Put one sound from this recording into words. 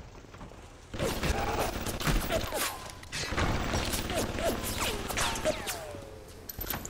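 Gunshots crack and echo loudly.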